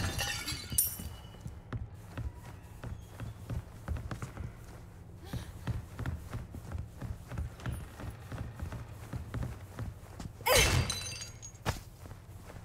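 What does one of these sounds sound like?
Footsteps run quickly across a wooden floor.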